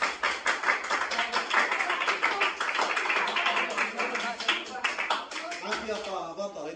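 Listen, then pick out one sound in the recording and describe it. A group of young people claps in a room.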